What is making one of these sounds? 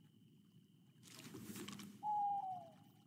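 A fishing rod swishes through the air in a cast.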